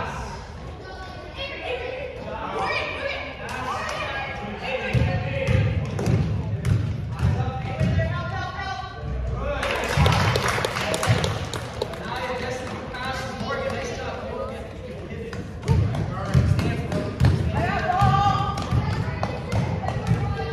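Girls shout and call out across the court.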